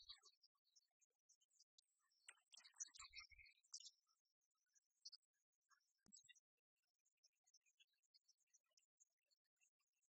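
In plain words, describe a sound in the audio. Game pieces click softly on a tabletop.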